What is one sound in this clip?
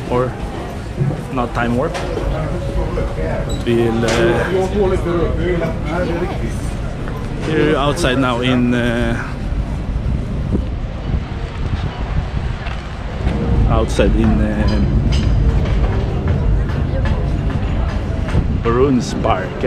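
A street crowd murmurs outdoors in wind.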